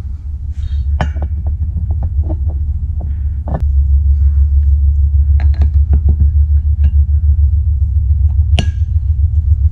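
Metal parts clink and knock together as they are handled.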